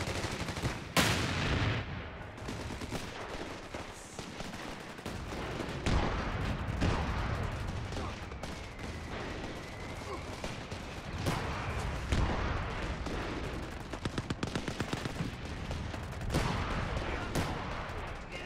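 Shells explode with deep, heavy booms now and then.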